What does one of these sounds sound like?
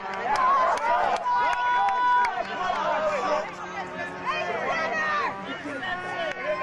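A crowd of spectators shouts and cheers nearby, outdoors.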